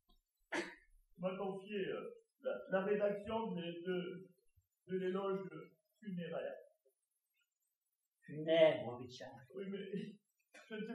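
A man speaks calmly to an audience from a short distance.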